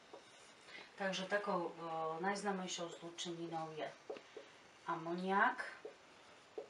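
A middle-aged woman speaks calmly and clearly, close by.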